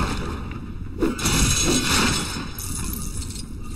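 Small coins jingle and clatter as they scatter.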